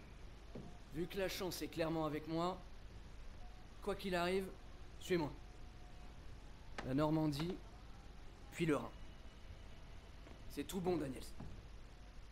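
A young man speaks calmly and close by, in short phrases.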